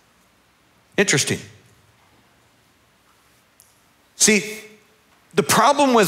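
A middle-aged man speaks with animation through a headset microphone in a large hall, pausing between phrases.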